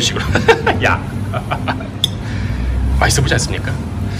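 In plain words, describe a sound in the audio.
A knife scrapes and clinks against a ceramic plate.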